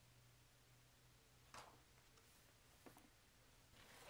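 A heavy book thumps shut.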